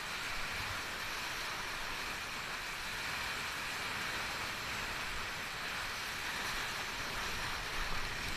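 Rushing river rapids roar loudly and steadily close by.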